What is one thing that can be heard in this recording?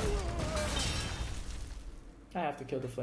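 Electronic game effects chime and whoosh.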